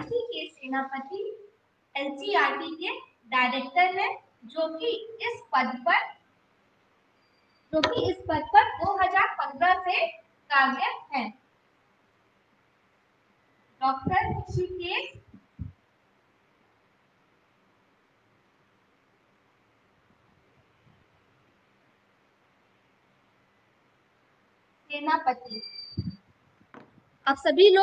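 A woman speaks calmly and clearly, as if teaching, in pauses.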